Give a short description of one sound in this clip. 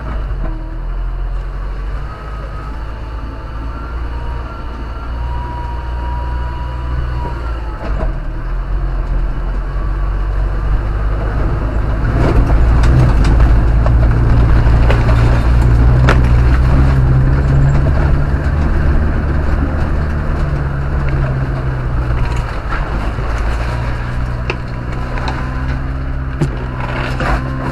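Tyres crunch and splash over snow, slush and puddles.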